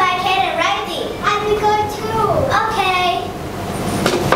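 A young girl speaks brightly, close by.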